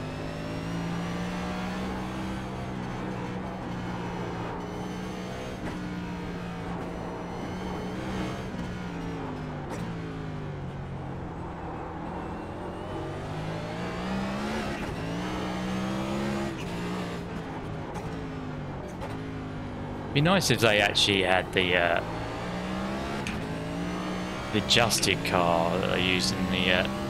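A race car engine roars, its pitch rising and falling through the gears.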